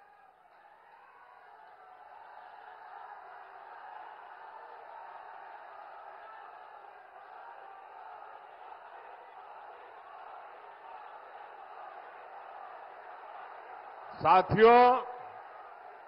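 A large crowd murmurs and cheers steadily outdoors.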